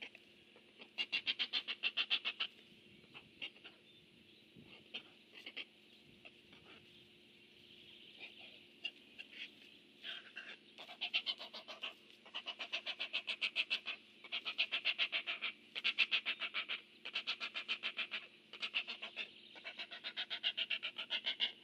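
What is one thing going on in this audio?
Young herons give rapid, clattering calls in bursts.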